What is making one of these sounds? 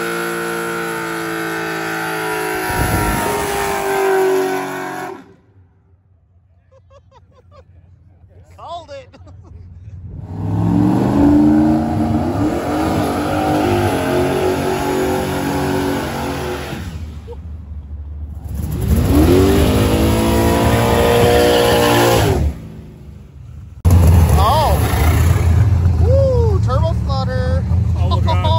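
A car engine roars and revs hard.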